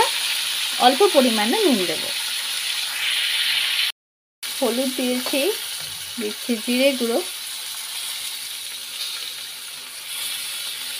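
Vegetables sizzle as they fry in a hot pan.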